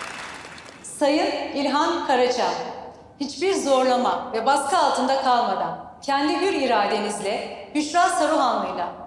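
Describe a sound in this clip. A middle-aged woman speaks warmly into a microphone.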